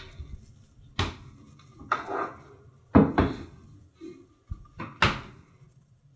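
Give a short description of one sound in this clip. A laptop lid knocks and clicks as it is closed and moved on a hard surface.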